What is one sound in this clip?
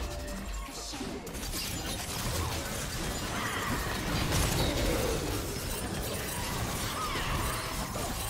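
Game fighting effects crackle, zap and clash in quick succession.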